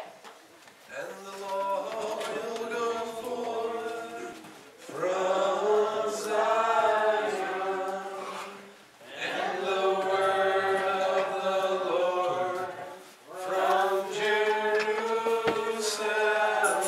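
An acoustic guitar strums along with the singing.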